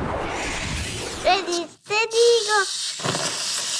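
Children laugh excitedly.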